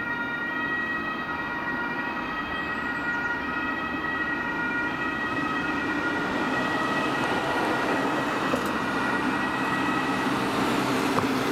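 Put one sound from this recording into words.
An emergency siren wails, drawing closer.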